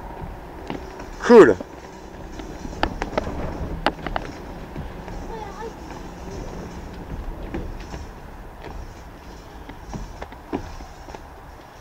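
Shoes scuff and thump on a wooden deck.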